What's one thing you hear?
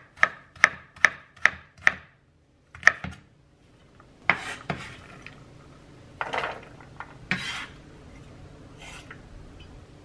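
A knife chops quickly on a wooden board.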